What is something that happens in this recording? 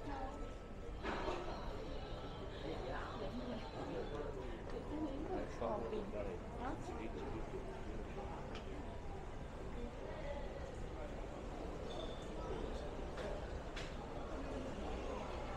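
Men and women talk quietly nearby outdoors.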